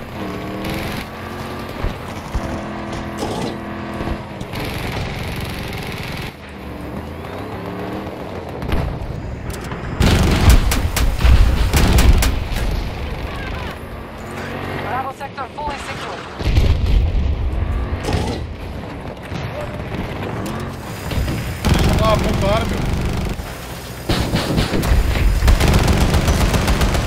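A tank engine rumbles and its tracks clatter.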